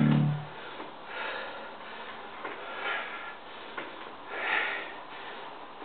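A man breathes out hard with each lift.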